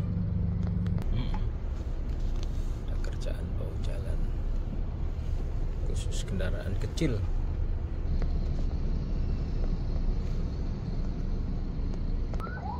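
A car engine rumbles steadily, heard from inside the car.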